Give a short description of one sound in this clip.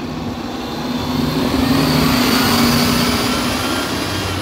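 A bus engine revs up and pulls away, growing louder.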